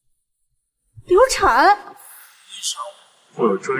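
A young woman gasps and speaks in distress.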